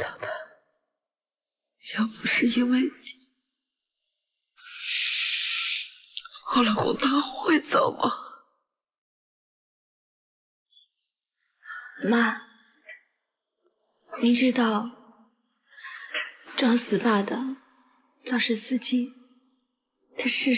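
A young woman speaks tensely and close by.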